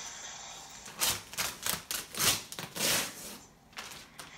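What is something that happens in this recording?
Wrapping paper rustles and crinkles close by.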